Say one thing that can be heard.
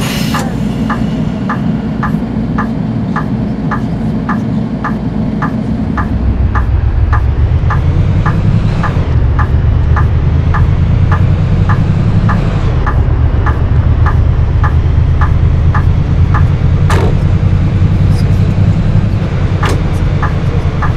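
A bus engine rumbles and grows louder as it pulls away.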